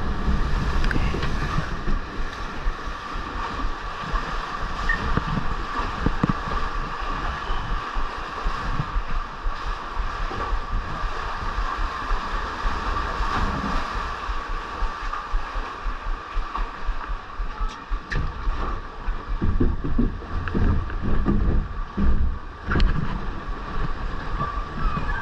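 A ride boat rumbles and rattles along a water channel.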